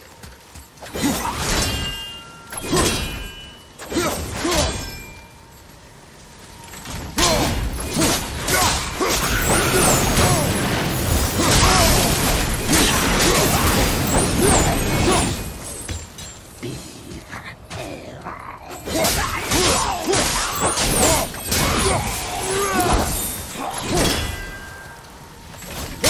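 Axe blows strike and clang against enemies.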